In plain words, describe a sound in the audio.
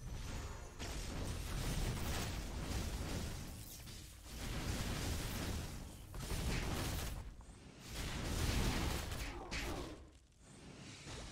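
Game hits thud repeatedly.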